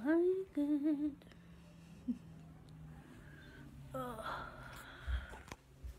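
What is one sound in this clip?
A young woman speaks playfully and close up, her voice rising and falling in a sing-song way.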